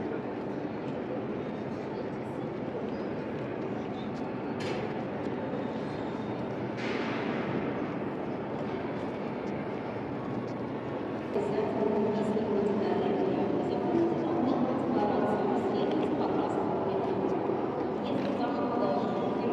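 A low steady hum fills a large echoing hall.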